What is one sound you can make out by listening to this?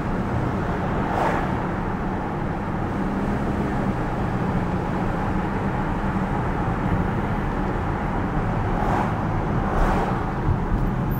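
Cars pass by in the opposite direction.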